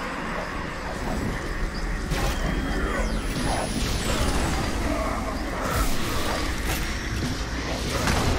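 A crackling energy beam fires in bursts.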